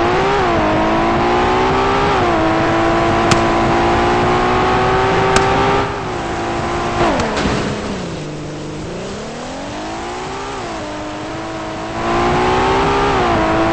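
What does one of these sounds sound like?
A car engine roars and revs, rising and falling in pitch as the car speeds up and slows down.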